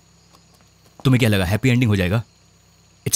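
A man speaks quietly and earnestly, close by.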